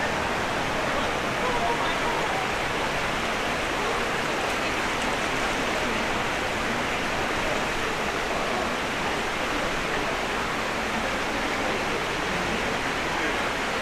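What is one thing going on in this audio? Water flows and splashes steadily in a shallow stream.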